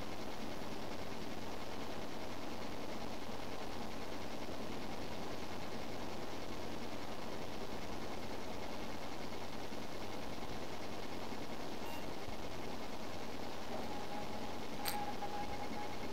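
A computer fan whirs steadily close by.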